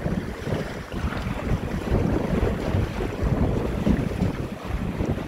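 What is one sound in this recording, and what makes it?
Choppy water splashes against a small boat's hull.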